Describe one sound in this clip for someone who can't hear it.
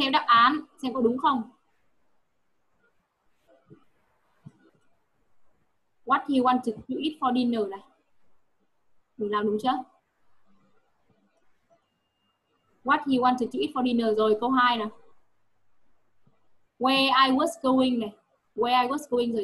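A young woman speaks calmly over an online call, in bursts with pauses.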